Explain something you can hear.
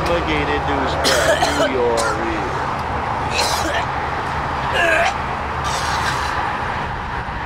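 A young man retches and vomits loudly close by.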